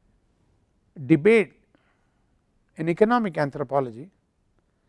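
An elderly man speaks calmly and clearly into a close microphone, in short phrases with pauses.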